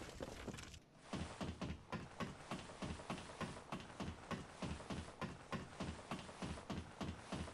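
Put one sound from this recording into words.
Hands and feet knock rhythmically on ladder rungs while climbing.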